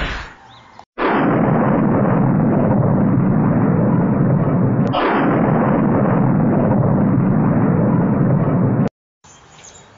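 A huge blast roars steadily and deeply.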